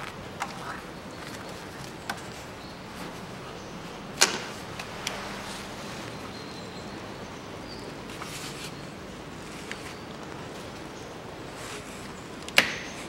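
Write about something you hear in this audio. Metal tools clink and knock against engine parts.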